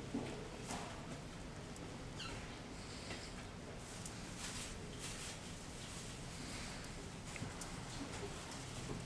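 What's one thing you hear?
Hands softly rub and stroke skin.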